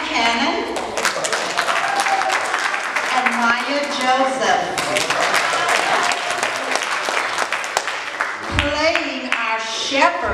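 People clap their hands along in rhythm.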